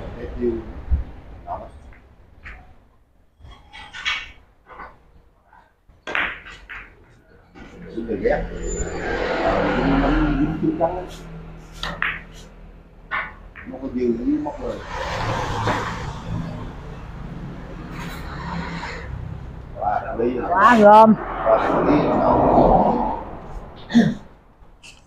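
Billiard balls click against each other on a table.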